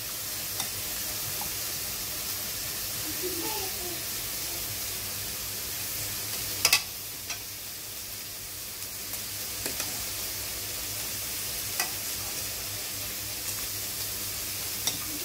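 A metal ladle clinks against a bowl and pot.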